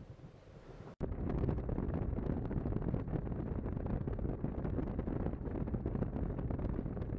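A boat motor rumbles steadily as the boat speeds over water.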